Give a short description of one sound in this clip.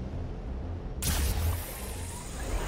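A grappling gun fires with a sharp hiss.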